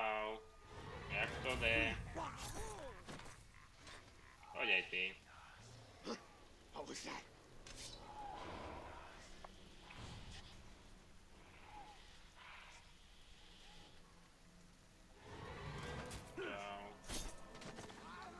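A blade slashes and thuds into flesh.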